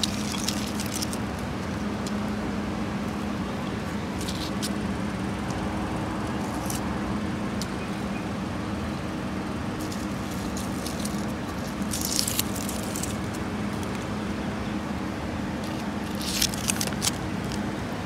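Plant stems rustle and scrape as a hand handles them.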